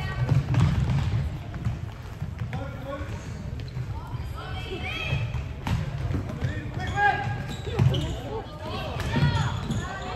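Plastic sticks clack against a ball and against each other.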